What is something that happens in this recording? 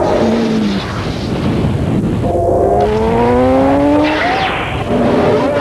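A motorcycle engine revs and roars as it accelerates.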